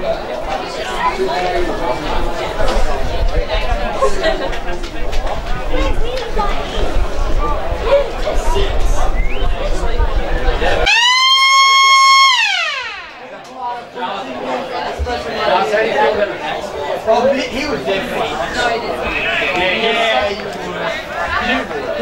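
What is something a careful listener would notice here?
Men chat and call out nearby outdoors.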